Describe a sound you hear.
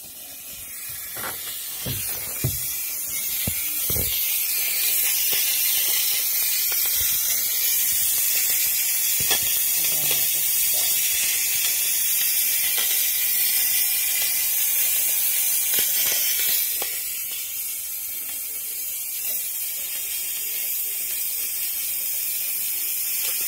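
A radiator air valve hisses steadily.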